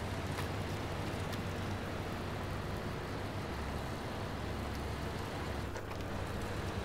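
A heavy truck engine rumbles steadily as it crawls over rough ground.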